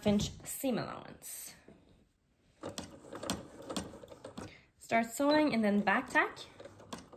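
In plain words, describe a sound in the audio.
A sewing machine stitches through thick fabric.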